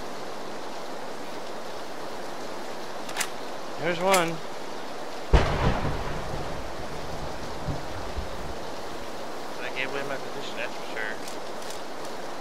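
Grass rustles softly as someone crawls through it.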